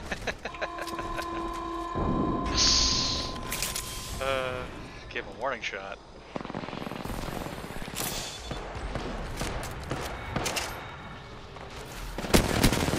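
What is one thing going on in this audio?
Gunshots crack rapidly from a video game.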